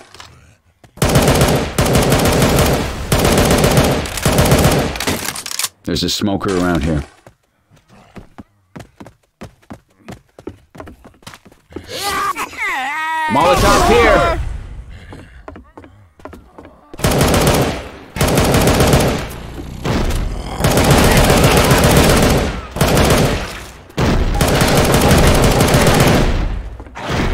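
A rifle fires in long, rapid bursts, loud and close.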